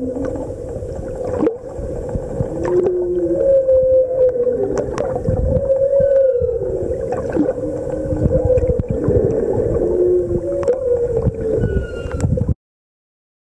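Water rushes and crackles underwater.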